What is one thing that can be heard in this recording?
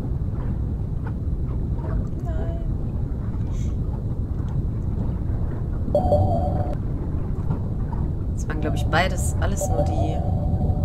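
A deep, muffled underwater rumble drones steadily.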